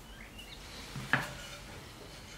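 A wooden board knocks down onto another wooden board.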